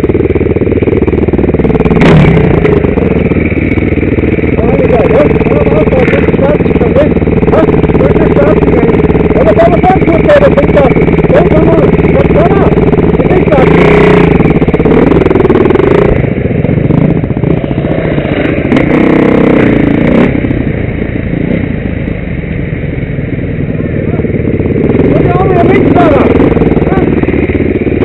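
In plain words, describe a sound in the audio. Another dirt bike engine revs nearby.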